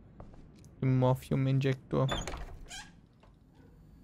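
A door clicks open.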